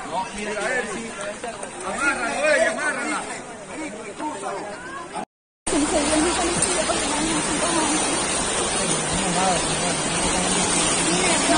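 Muddy floodwater rushes and roars loudly.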